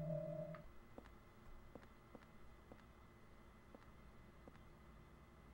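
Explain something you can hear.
Footsteps thud slowly and evenly on a hard floor.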